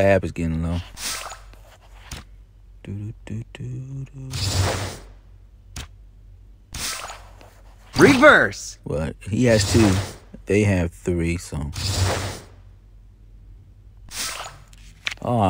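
Playing cards swish and snap softly as they are laid down, again and again.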